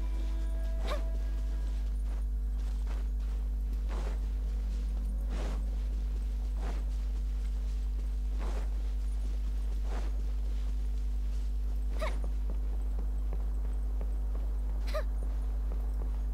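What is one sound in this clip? Footsteps swish through tall dry grass.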